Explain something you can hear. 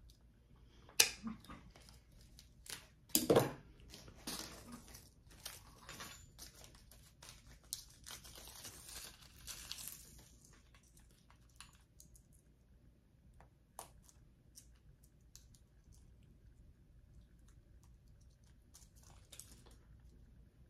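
Metal pliers click and clink against a metal buckle.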